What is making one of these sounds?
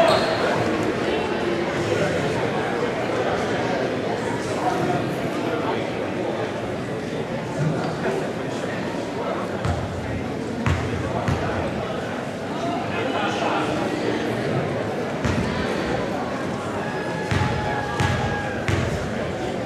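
A basketball bounces on a wooden floor with dull thuds.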